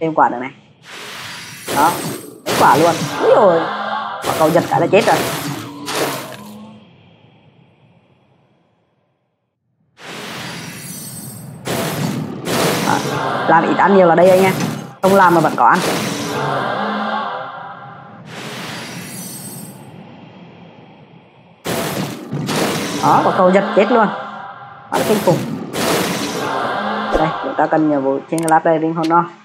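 Magic spells crackle and burst in quick blasts.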